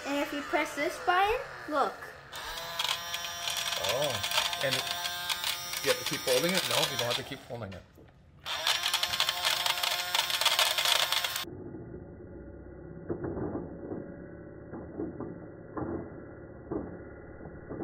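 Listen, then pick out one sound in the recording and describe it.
Small plastic beads rattle and swirl inside a toy vacuum cleaner.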